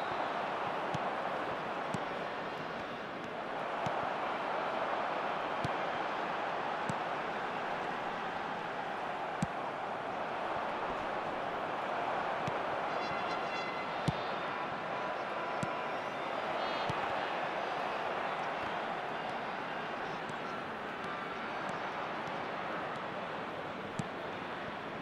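A football is kicked with sharp thumps now and then.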